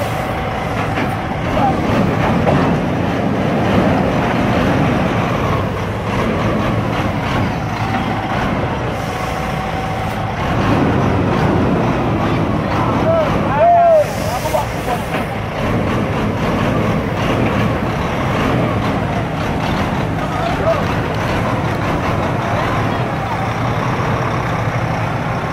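A truck engine idles with a low, steady rumble nearby.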